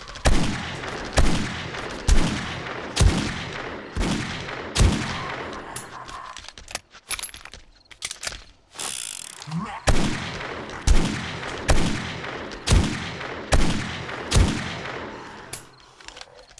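A rifle fires single shots that echo.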